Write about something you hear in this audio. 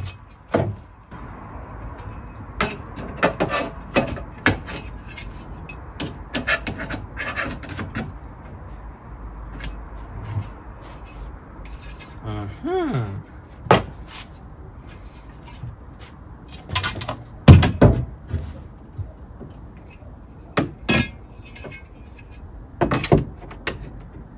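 Metal frame parts clank and knock together.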